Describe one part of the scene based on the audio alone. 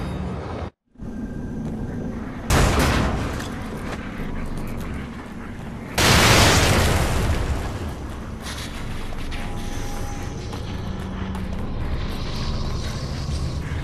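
Footsteps run quickly over gravel.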